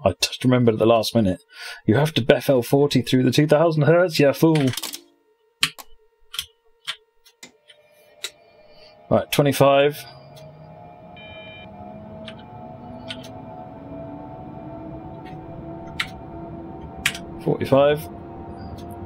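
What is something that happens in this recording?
A man talks casually into a close microphone.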